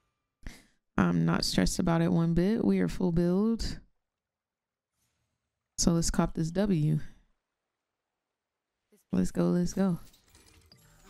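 A young woman sings in short phrases close to a microphone.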